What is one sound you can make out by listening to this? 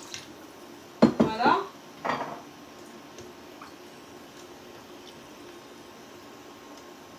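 A metal spoon clinks and scrapes in a pot.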